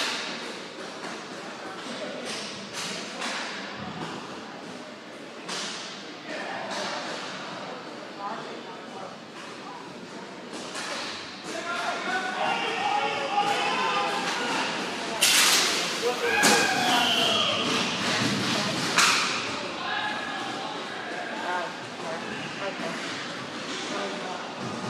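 Sticks clack sharply in a large echoing hall.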